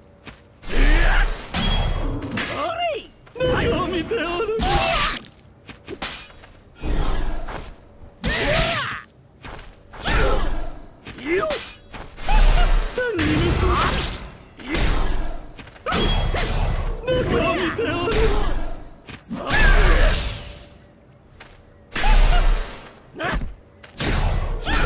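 Heavy blows land with loud thuds and crashes.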